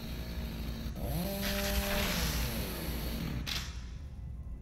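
A chainsaw revs and grinds.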